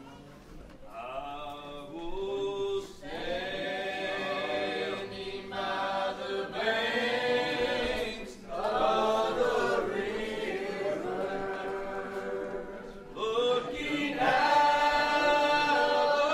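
An acoustic guitar plays a tune.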